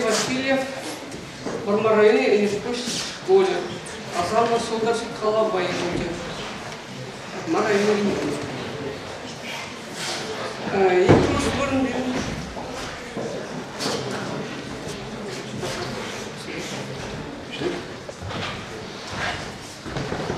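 A man reads out aloud through a microphone in a hall with a slight echo.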